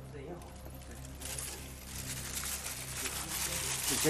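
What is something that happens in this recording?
Metal chains clink against a tiled floor.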